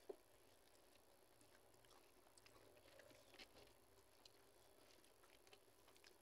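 Fingers mix rice and lentils on a steel plate.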